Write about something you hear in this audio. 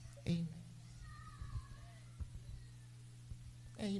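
A woman speaks through a microphone and loudspeakers.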